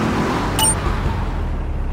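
A car engine hums steadily as the car drives.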